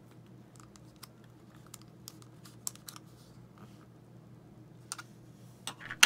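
Small plastic parts click softly as a key is slid out of a key fob.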